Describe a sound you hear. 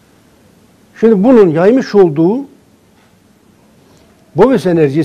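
A middle-aged man speaks calmly and clearly into a microphone, close by.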